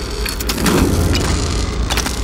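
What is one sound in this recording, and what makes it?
An explosion bursts with crackling sparks.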